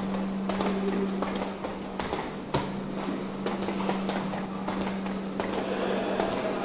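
Footsteps go down stairs and along a hard floor, echoing in a tiled passage.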